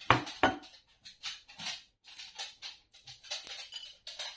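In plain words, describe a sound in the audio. Fingers rub and scrape against a ceramic saucer.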